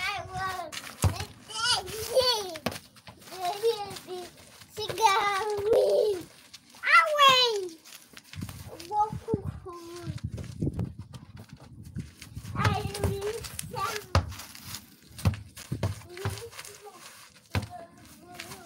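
A ball thumps when kicked.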